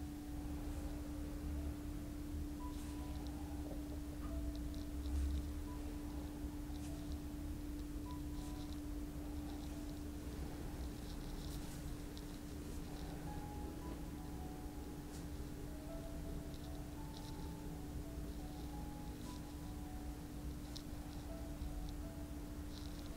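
Hands rub softly over a towel.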